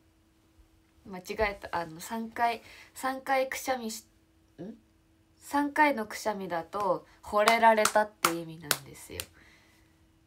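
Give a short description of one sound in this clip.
A young woman talks cheerfully and with animation, close to a phone's microphone.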